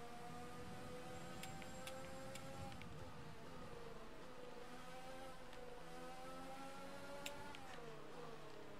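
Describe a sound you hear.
A racing car engine whines at high revs, dropping in pitch as it slows for corners and rising again as it speeds up.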